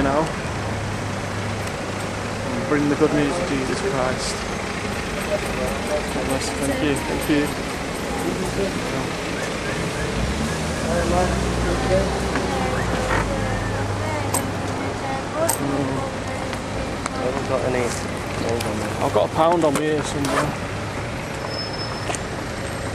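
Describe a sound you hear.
Traffic rumbles past on a busy street outdoors.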